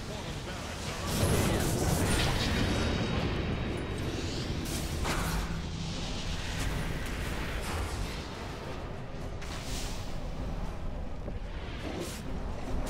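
Magic blasts burst with loud impacts.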